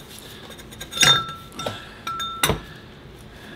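Metal parts clank together.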